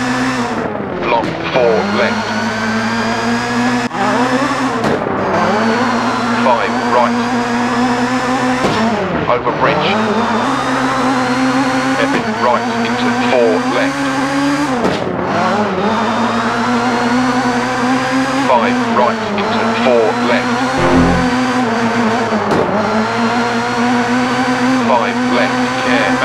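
Tyres skid on gravel.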